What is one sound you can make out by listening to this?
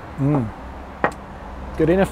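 A glass knocks down onto a wooden table.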